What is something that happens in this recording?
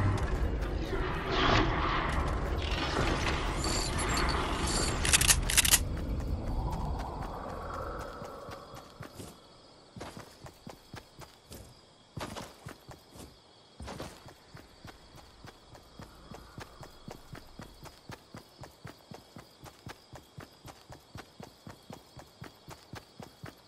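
Footsteps run over gravel and grass.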